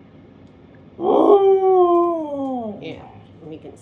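A husky howls a long falling awoo.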